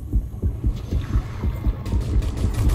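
Water bubbles and gurgles underwater.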